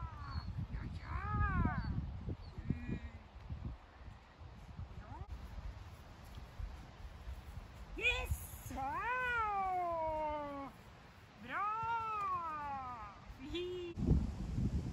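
A woman calls out to a dog in a high, cheerful voice.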